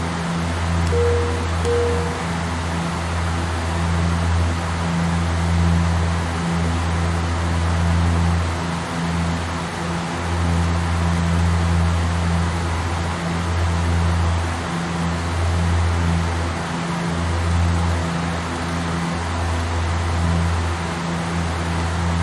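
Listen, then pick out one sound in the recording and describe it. Aircraft engines drone low and steady.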